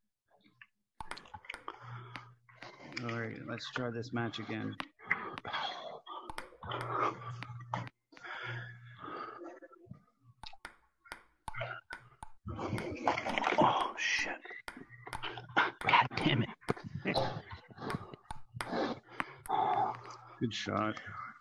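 A ping-pong ball taps back and forth on paddles and a table.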